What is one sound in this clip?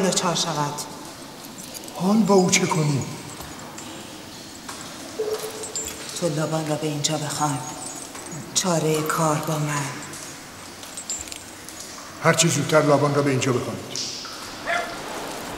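An elderly man speaks gravely and slowly, close by.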